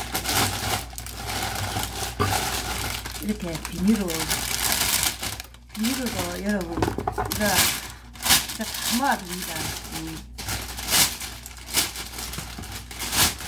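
A plastic bag rustles and crinkles up close.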